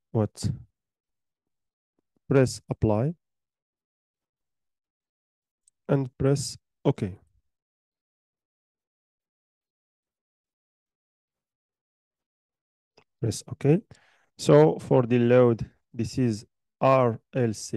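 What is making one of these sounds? A young man speaks calmly into a microphone, in short bursts with pauses.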